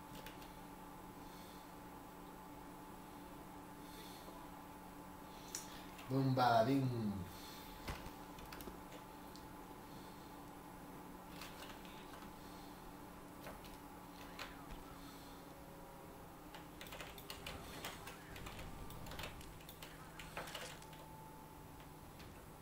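Keys and a mouse click now and then close by.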